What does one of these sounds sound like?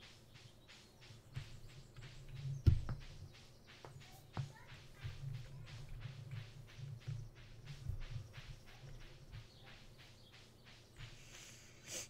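Footsteps patter quickly and evenly on grass.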